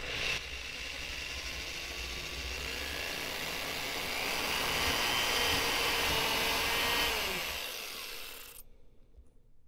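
An electric drill whines as it bores into wood.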